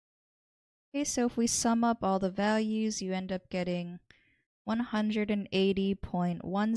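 A young woman speaks calmly and clearly into a close microphone.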